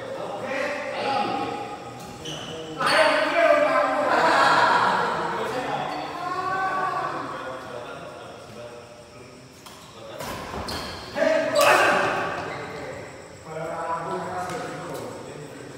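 Men talk and call out loudly in an echoing hall.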